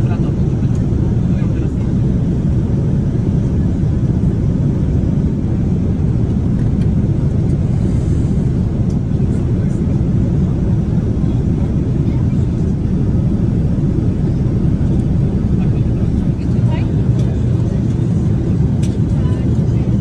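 A steady low roar of an aircraft cabin fills the air.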